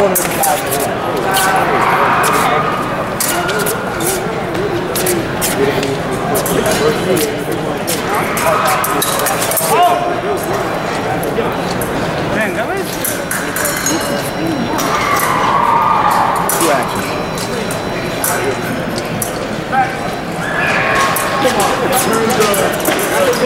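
A large echoing hall hums with the chatter of a crowd.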